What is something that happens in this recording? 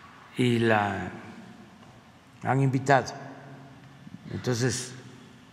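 An elderly man speaks slowly into a microphone, in short bursts with pauses.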